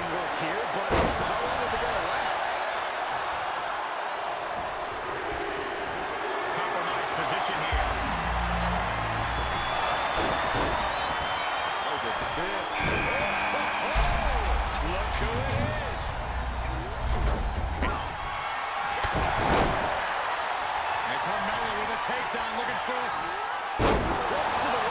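Wrestlers' bodies thud heavily onto the ring mat.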